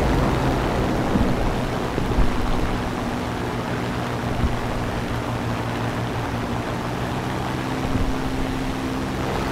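A propeller plane's engine drones steadily.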